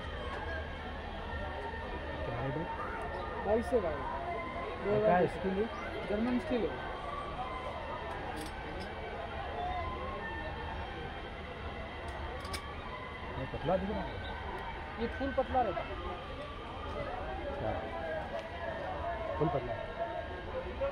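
A crowd chatters outdoors in the open air.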